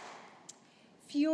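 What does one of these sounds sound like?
A woman speaks through a loudspeaker.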